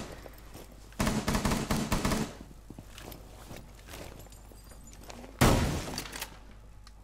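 Rapid gunfire rattles in short, loud bursts.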